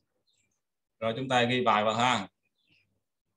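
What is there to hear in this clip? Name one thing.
A young man speaks briefly through an online call microphone.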